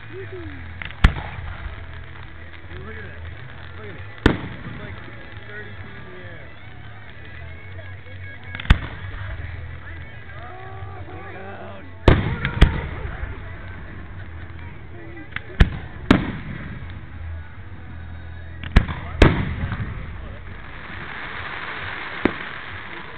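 Fireworks burst with loud booms that echo away.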